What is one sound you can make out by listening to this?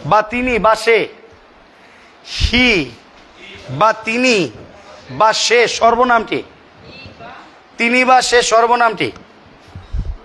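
A man speaks loudly and with animation close by.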